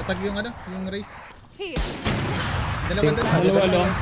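A rifle fires a single sharp, loud shot.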